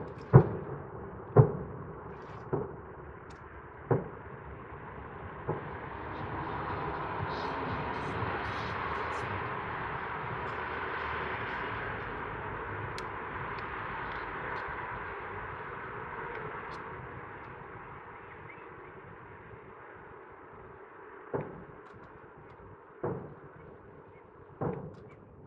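Fireworks boom and pop in the distance.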